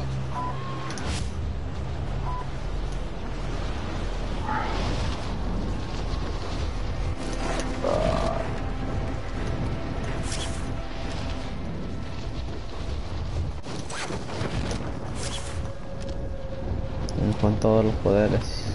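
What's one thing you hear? Wind rushes past during a fall through the air.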